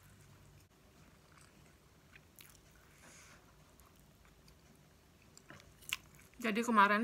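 A woman chews and slurps noodles close to a microphone.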